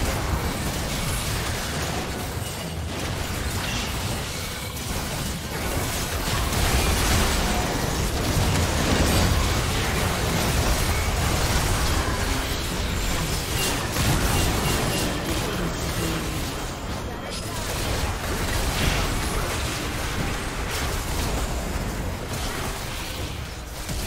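Video game battle effects crackle and clash with magic blasts and hits.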